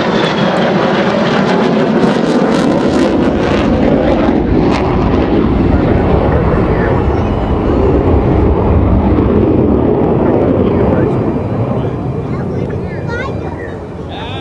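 Jet engines roar loudly across an open field.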